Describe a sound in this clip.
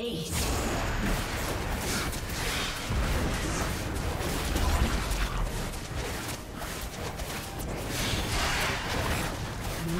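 Game spell effects crackle and boom in a busy fight.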